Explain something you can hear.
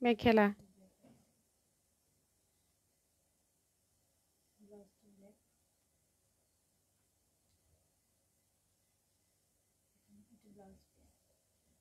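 A woman speaks in short, calm bursts close by.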